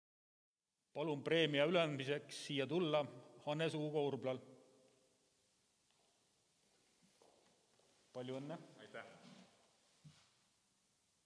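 A man speaks into a microphone in a reverberant hall.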